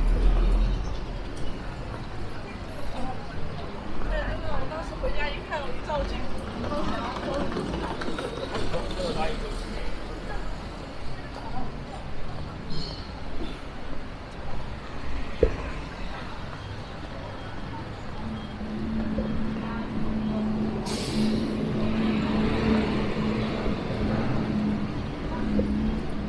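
Traffic hums along a nearby road.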